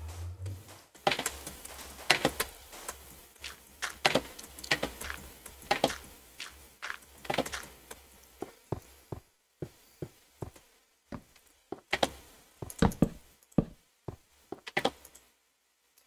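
Blocks of dirt crunch and pop as they are dug out in quick strokes.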